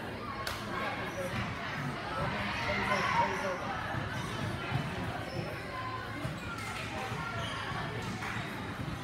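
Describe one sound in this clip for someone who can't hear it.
Voices of girls and women chatter throughout in a large echoing hall.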